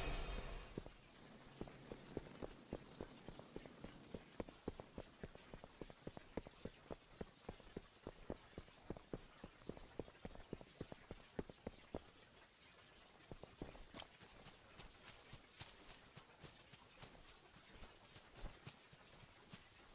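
Footsteps patter quickly over hard ground.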